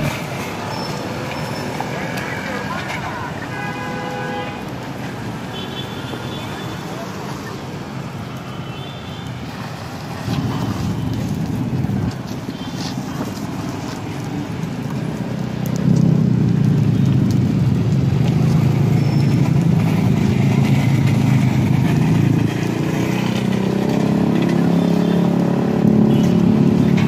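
Motorcycle engines idle and pass by on a street.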